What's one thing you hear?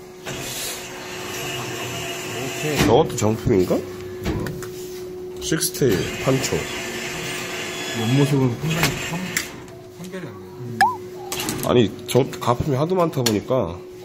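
A claw machine hums steadily.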